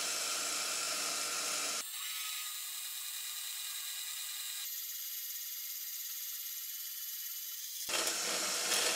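A band saw cuts through sheet metal with a steady whine.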